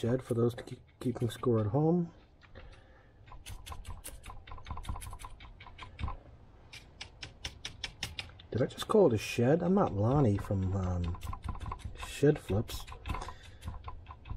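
A paintbrush dabs and taps against wood in quick, light strokes.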